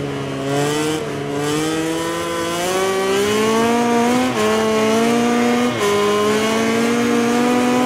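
A racing motorcycle engine accelerates hard, shifting up through the gears.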